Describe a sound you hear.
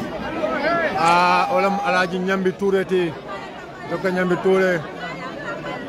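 A man chants loudly over the crowd.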